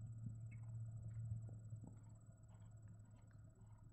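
A horse's hooves thud on soft sand as it canters past.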